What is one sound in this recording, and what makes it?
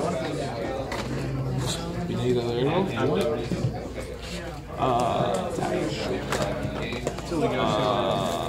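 Playing cards slide and tap softly on a play mat.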